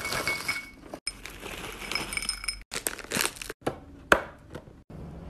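A plastic snack bag crinkles.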